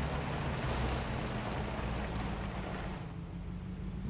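Tyres crunch on gravel as a truck rolls forward.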